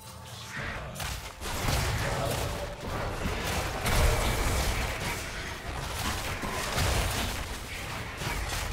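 Magic spells crackle and boom in a game battle.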